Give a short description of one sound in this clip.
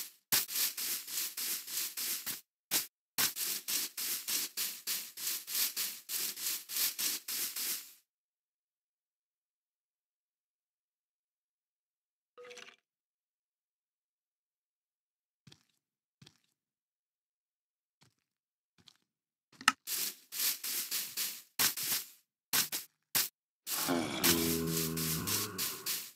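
Footsteps tread quickly over grass.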